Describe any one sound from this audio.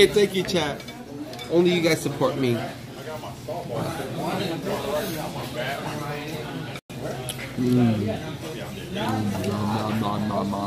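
People chatter in the background of a busy room.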